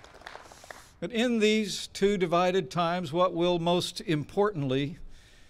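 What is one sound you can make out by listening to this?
A man speaks calmly and clearly into a microphone outdoors.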